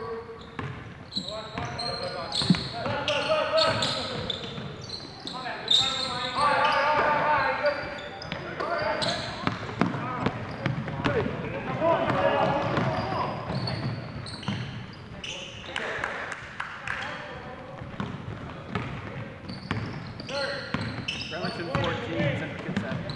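Young men shout and call out to each other during play.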